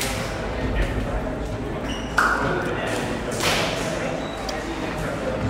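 Several men chatter nearby in an echoing corridor.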